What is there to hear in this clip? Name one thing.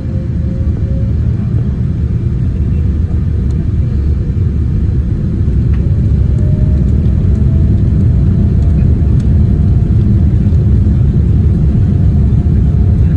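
Wheels rumble over a runway.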